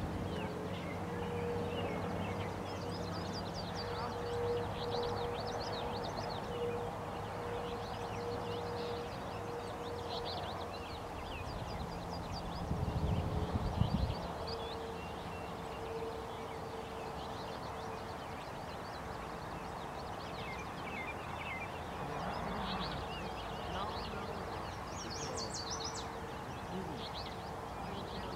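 A river flows gently outdoors.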